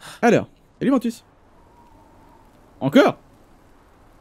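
A young man speaks in short bursts into a close microphone.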